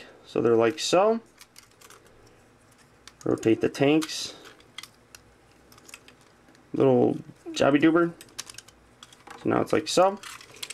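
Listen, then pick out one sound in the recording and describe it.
Plastic toy joints click and snap as they are moved by hand.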